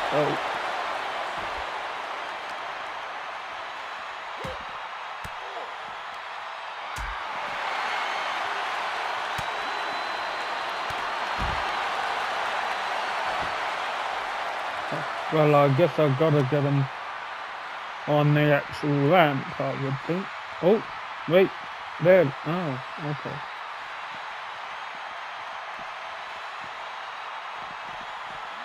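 A crowd cheers and roars in a large arena.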